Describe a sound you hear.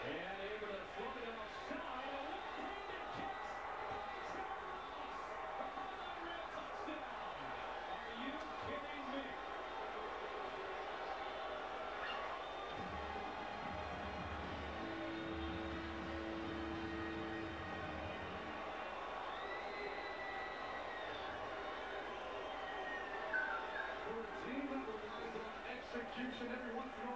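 A television plays a sports broadcast in the room.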